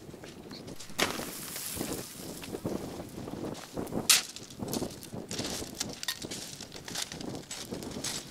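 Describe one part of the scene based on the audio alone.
Molten metal hisses and crackles as it burns.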